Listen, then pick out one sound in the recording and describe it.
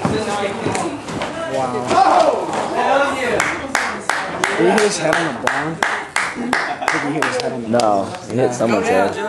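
Bodies thud heavily onto a wooden floor.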